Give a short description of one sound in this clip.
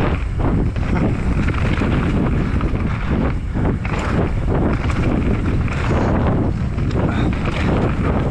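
A bicycle's frame and chain rattle over bumps.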